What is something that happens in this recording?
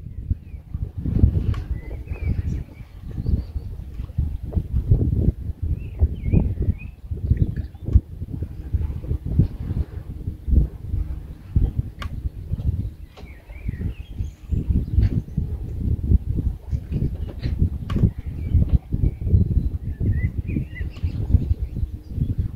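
Small waves lap against a wooden dock.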